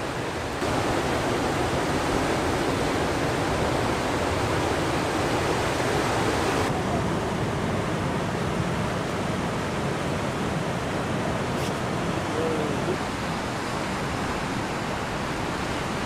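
Ocean waves break and rush steadily.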